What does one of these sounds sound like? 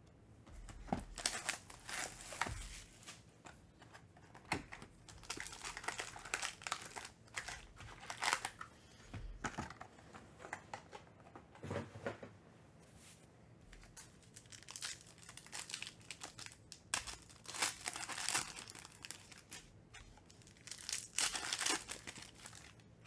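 Foil wrappers crinkle and rustle as hands tear open packs.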